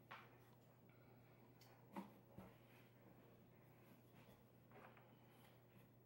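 A rolling pin rolls dough on a wooden board.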